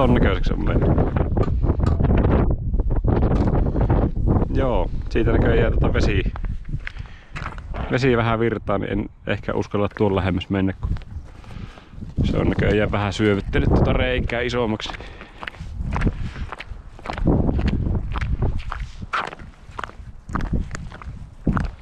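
Boots crunch on ice.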